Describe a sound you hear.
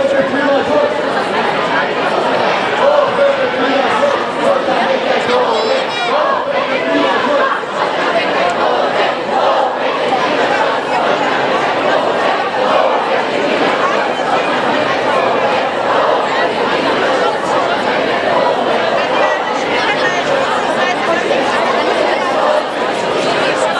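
A large crowd chatters and shouts loudly outdoors.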